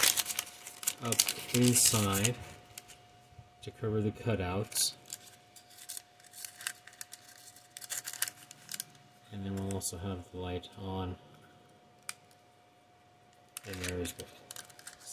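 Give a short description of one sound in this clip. Fingers handle and turn a hard plastic model with light taps and scrapes.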